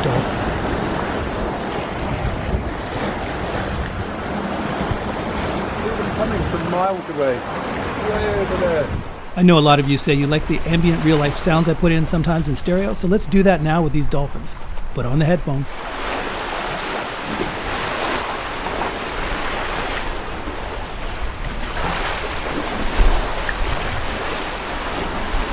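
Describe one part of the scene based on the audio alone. Water rushes and splashes along the side of a moving boat.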